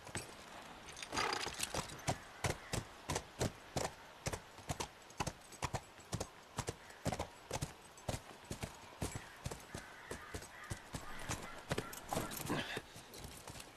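Horse hooves clop steadily on hard ground.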